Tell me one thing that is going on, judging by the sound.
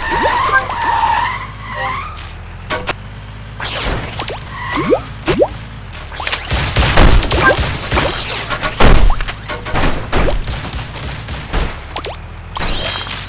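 Video game shots and explosions pop and boom.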